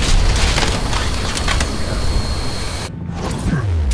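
A grappling line whizzes out and snaps taut.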